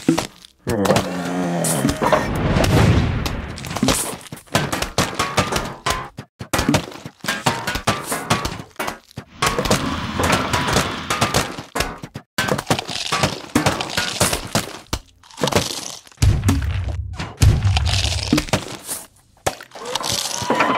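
Cartoonish splats and thuds from a game play rapidly.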